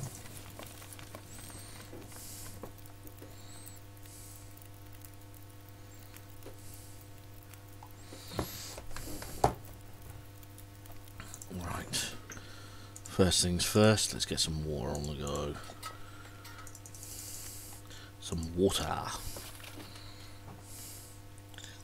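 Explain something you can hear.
A fire crackles in a wood stove.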